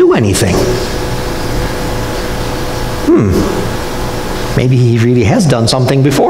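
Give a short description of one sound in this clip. An elderly man speaks calmly to an audience in a room with a slight echo.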